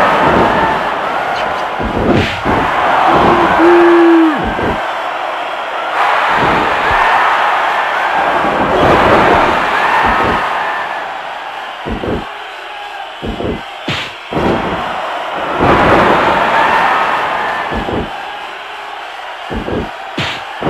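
A crowd cheers loudly throughout.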